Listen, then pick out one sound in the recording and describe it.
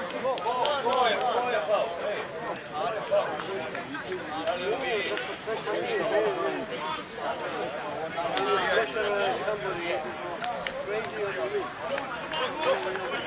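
Several men chat and talk over one another close by, outdoors.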